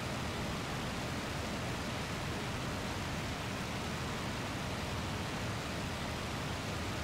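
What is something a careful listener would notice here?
Wind rushes loudly past an open aircraft.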